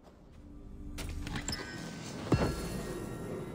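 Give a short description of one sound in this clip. A wooden chest lid creaks open and thuds.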